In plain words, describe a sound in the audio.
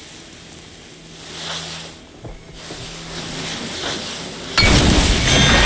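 Magic energy hums and crackles as it charges.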